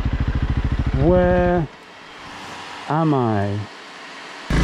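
A motorcycle engine revs up sharply in short bursts.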